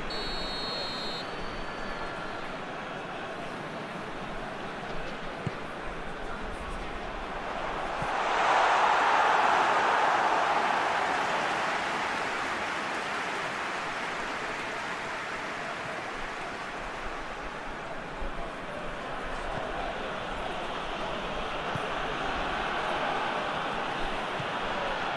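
A large stadium crowd roars steadily and swells loudly around a shot on goal.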